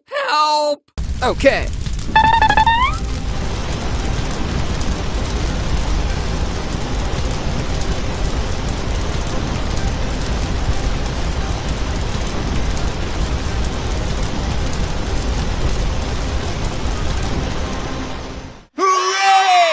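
Water sprays out in a steady rushing hiss.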